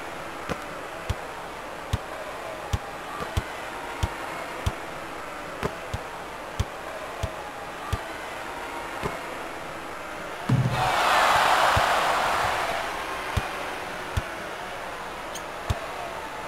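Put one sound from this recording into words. A basketball bounces on a hard court in a steady dribbling rhythm.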